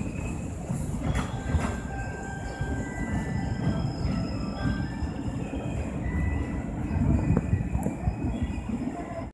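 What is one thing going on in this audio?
Train wheels squeal faintly on the rails.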